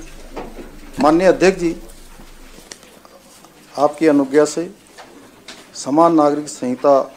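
A man speaks with emphasis through a microphone.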